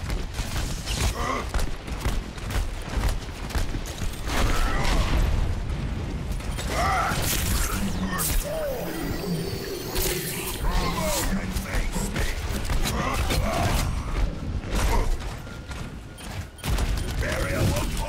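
Game weapons fire in rapid, crackling bursts.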